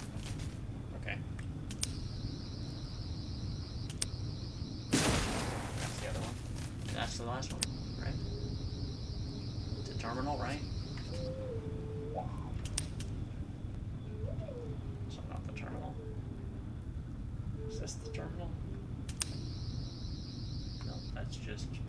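A low spaceship engine hums steadily.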